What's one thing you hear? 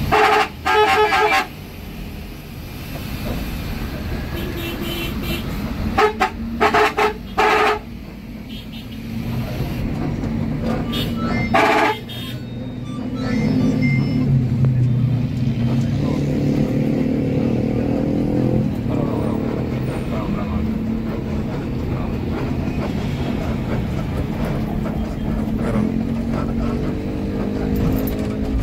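A bus engine rumbles steadily, rising and falling in pitch as it pulls away.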